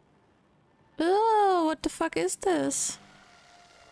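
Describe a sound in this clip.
A young woman cries out in alarm, close to a microphone.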